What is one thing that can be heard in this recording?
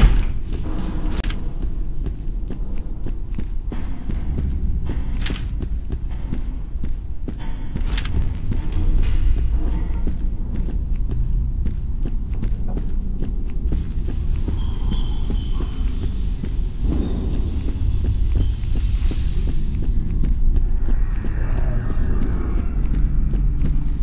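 Footsteps tread steadily on a hard floor, echoing in an empty building.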